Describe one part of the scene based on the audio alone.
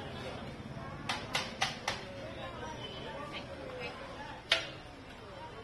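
A metal ladle clinks against a steel pot.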